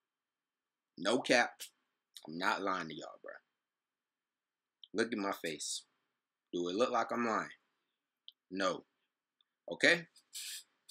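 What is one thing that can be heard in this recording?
A young man speaks with animation close to a microphone, in short bursts.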